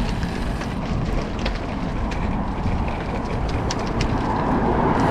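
Wind rushes past a microphone on a moving road bicycle.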